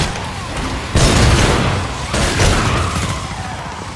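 Pistol shots fire loudly, with booming echoes.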